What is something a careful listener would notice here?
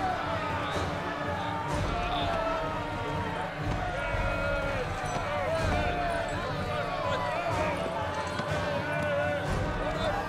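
A crowd of men and women shout and wail in agitation close by.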